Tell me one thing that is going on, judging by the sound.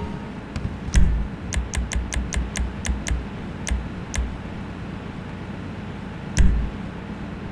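Short menu clicks tick as items are selected.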